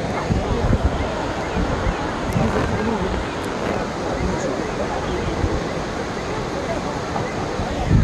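An elderly man talks close by.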